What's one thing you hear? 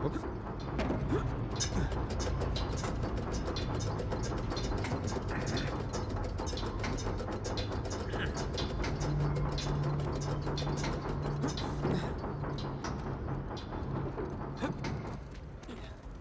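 Large gears clank and grind with rapid ticking.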